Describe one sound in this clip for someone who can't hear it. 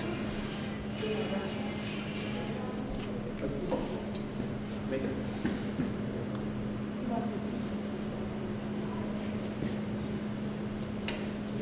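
Several adults murmur quietly at a distance in a large echoing hall.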